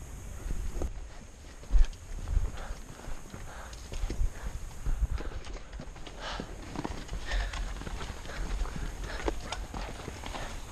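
Boots crunch on loose rocks with each step.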